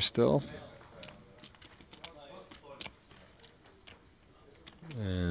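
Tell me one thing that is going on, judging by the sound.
Poker chips click in a player's fingers.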